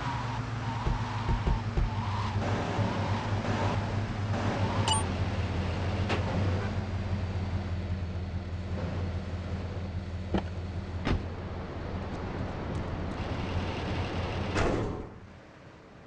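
A car engine hums steadily and then cuts off.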